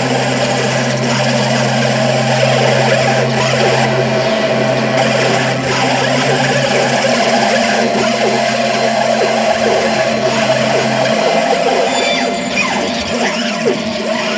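Droning electronic tones hum and warble steadily through loudspeakers.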